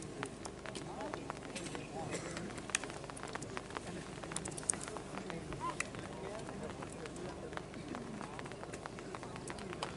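Arrows thud into a straw target one after another.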